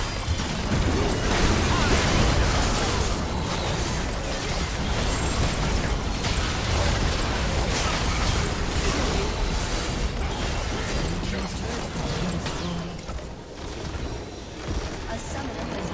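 Game spell effects crackle, whoosh and boom in a busy fight.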